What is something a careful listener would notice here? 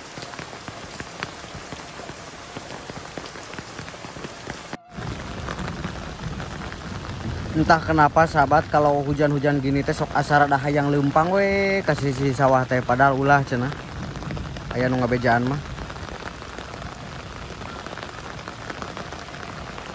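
Steady rain falls outdoors.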